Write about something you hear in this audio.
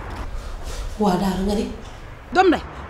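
A young woman speaks with agitation close by.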